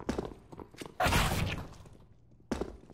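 Gunshots crack loudly in a short burst.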